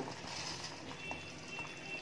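Rice pours into simmering liquid with a soft splash.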